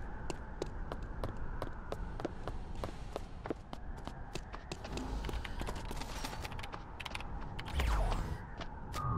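Quick footsteps tap steadily on hard ground.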